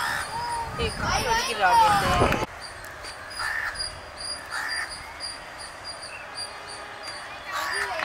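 A cricket bat knocks a ball.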